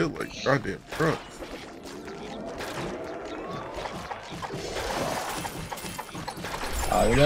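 Sword blows land on enemies with sharp hits.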